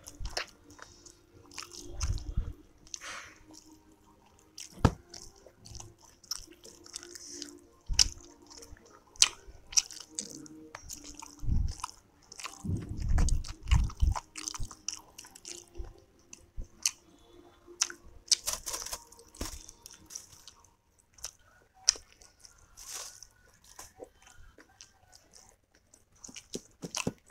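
A person chews soft food wetly and close up.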